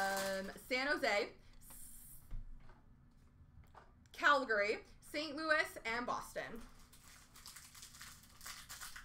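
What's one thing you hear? Card packs rustle and crinkle in hands.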